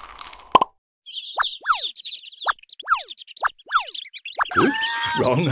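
Small chicks cheep in high voices.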